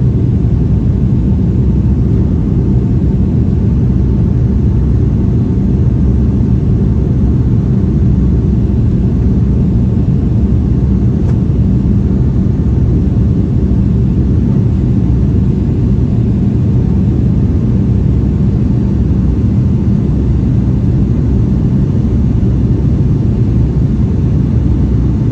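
Jet engines roar steadily with a deep, loud rumble inside an airliner cabin.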